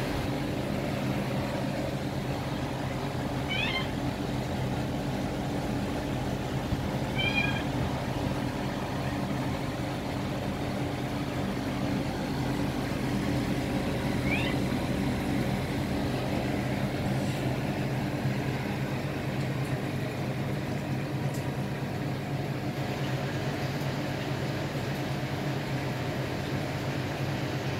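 An aquarium air pump hums steadily.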